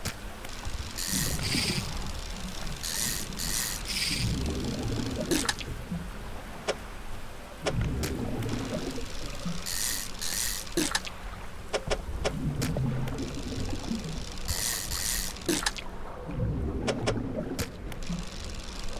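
A boat engine rumbles low.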